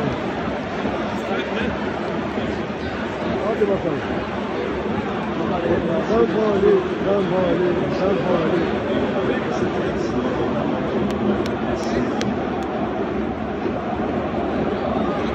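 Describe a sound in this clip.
A large stadium crowd roars and chants loudly all around.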